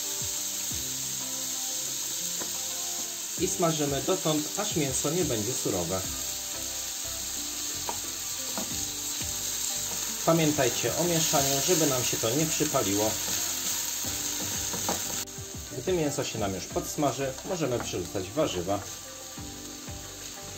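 Food sizzles and crackles in a hot frying pan.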